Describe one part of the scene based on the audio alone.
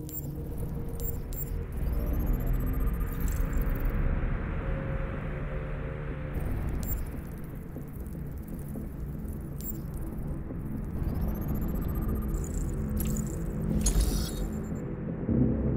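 Electronic interface tones chime and whoosh as panels open.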